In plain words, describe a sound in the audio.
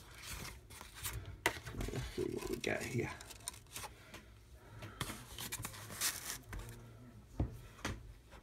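A metal clipboard clip snaps open and shut.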